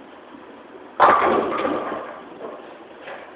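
Bowling pins crash and clatter loudly.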